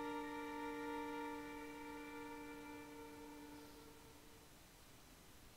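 A violin holds one long, steady note that slowly fades away.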